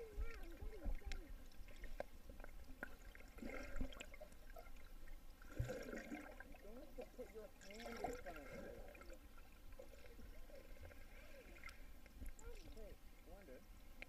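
Water swishes and bubbles, heard muffled underwater.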